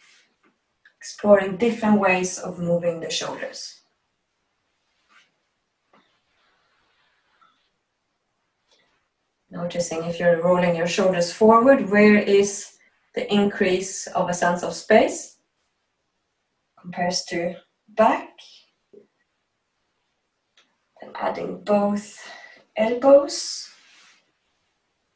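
A woman speaks calmly and clearly, close by, in short phrases with pauses.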